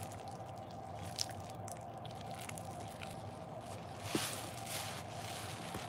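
Hands squish and squeeze wet, foamy soap, with soft crackles and squelches.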